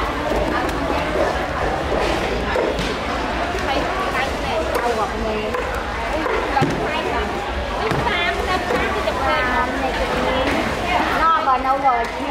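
Many people chatter in a busy, noisy crowd nearby.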